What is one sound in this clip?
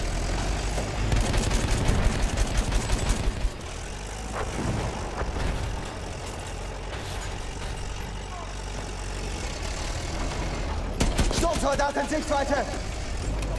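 Machine guns rattle in rapid bursts.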